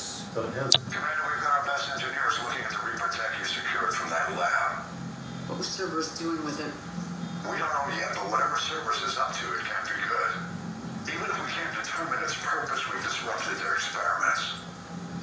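A middle-aged man speaks calmly through a radio-like transmission.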